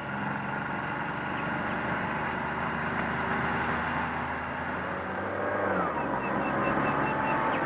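A van engine hums as the van drives slowly closer.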